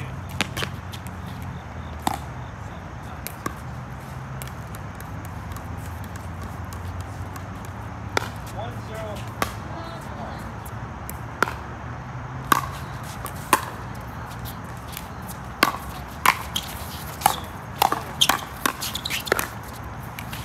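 Paddles hit a plastic ball with sharp pops, back and forth.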